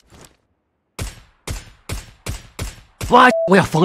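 Rifle shots crack in quick succession, each followed by a short ring.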